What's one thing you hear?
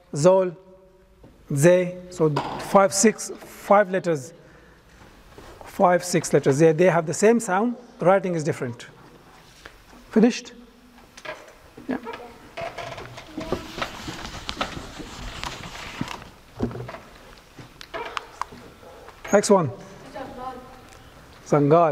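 A man speaks calmly through a clip-on microphone.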